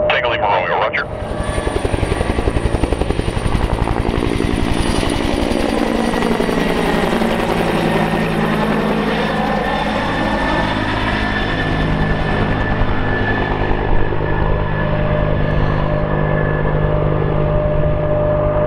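A helicopter's rotor thumps loudly as it flies close overhead.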